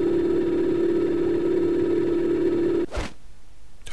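A tool hums steadily, then cuts off.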